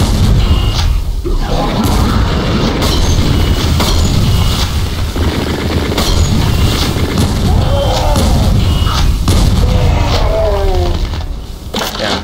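A heavy gun fires rapid shots.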